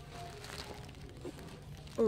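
Plastic bags crinkle and rustle as a hand handles them.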